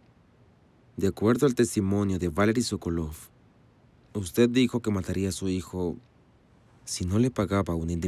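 A younger man answers calmly nearby.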